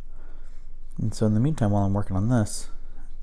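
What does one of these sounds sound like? A man speaks briefly close by.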